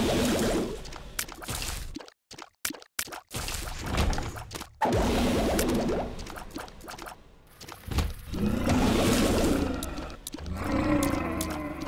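Electronic game shots pop and splatter rapidly.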